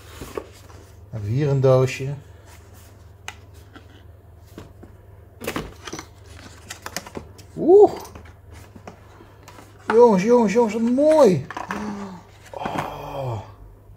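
Cardboard packaging scrapes and taps as hands handle it.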